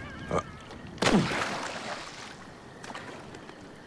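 Water splashes loudly, then swishes as someone wades.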